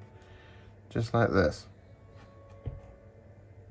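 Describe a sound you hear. A brush taps against the rim of a paint pot.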